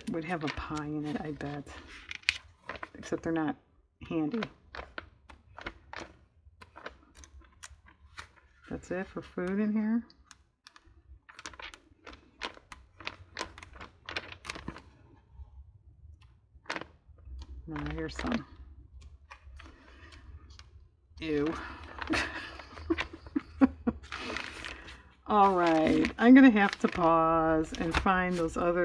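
Magazine pages rustle and flap as they are turned quickly.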